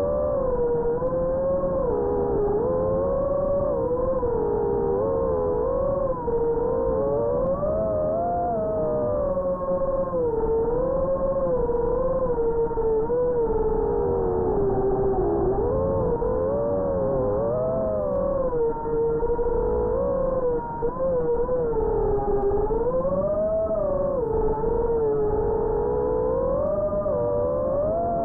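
Drone motors whine steadily, their pitch rising and falling as the drone flies close by.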